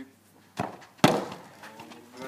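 A football is kicked hard with a sharp thud.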